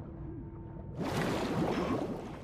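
Water splashes loudly as a swimmer breaks the surface.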